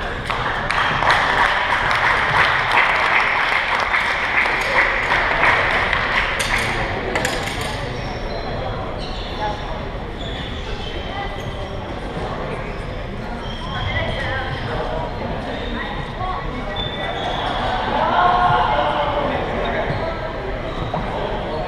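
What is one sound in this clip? A crowd of young people chatters, echoing in a large hall.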